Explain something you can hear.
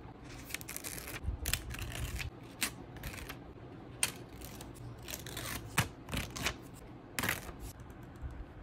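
Paper sticky notes rustle and crinkle as they are peeled and flipped.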